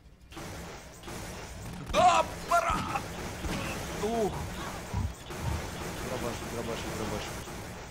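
A mounted gun fires rapid shots.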